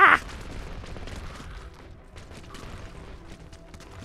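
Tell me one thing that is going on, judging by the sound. Rapid gunfire and small blasts crackle in a battle.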